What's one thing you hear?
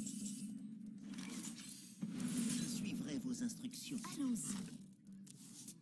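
Playful magical sound effects whoosh and chime.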